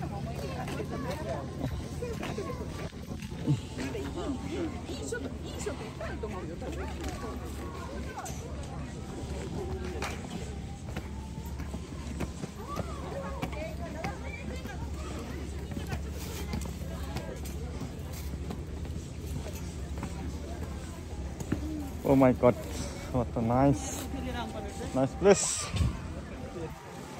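Several young people chatter nearby outdoors.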